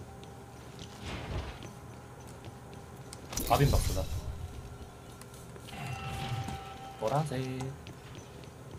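A middle-aged man speaks in short bursts close to a microphone.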